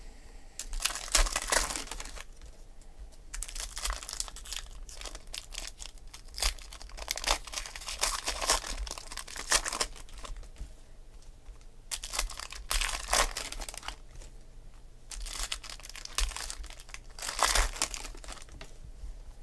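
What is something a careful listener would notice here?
Foil card packs crinkle and rustle as hands tear them open.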